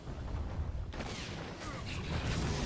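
A fiery blast booms loudly.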